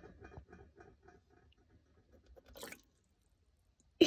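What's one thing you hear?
Clam shells click against each other in a metal pot.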